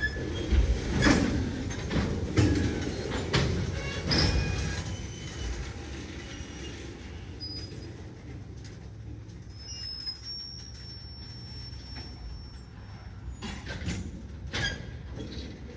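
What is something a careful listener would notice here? Train wheels clank and bang on the rails.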